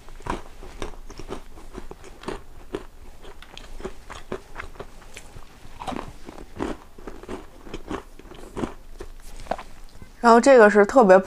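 A young woman chews crunchy food close to a microphone.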